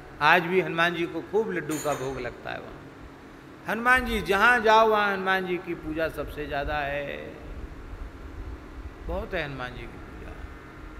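A middle-aged man speaks with animation into a microphone, in short bursts with pauses.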